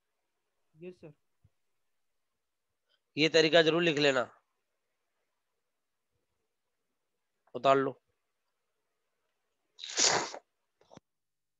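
A man speaks in short phrases through a microphone.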